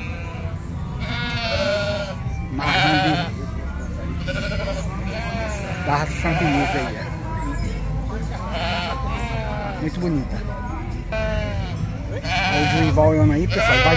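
Goats bleat loudly and repeatedly close by.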